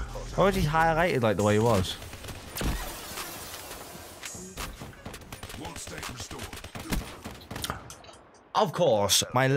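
Gunfire cracks in quick bursts from a video game.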